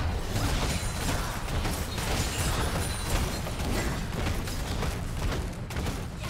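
Game sword strikes clash in quick succession.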